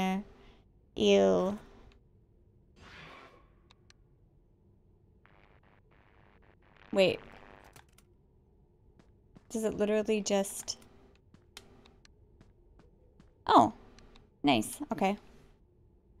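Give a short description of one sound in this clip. A young woman talks and exclaims with animation, close to a microphone.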